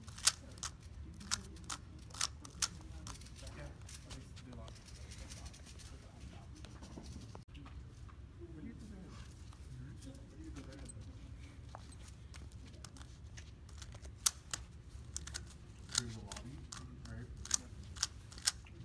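Plastic puzzle cube pieces click and clack as they are turned.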